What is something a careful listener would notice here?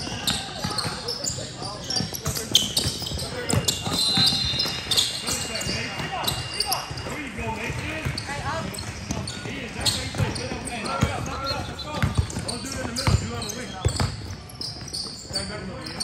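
Sneakers squeak on a sports court floor in a large echoing hall.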